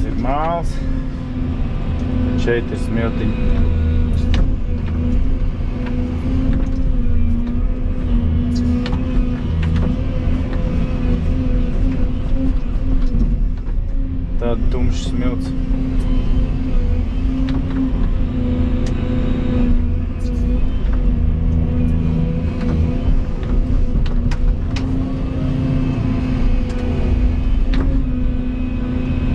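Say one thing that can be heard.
A crawler excavator's diesel engine rumbles under load, heard from inside the cab.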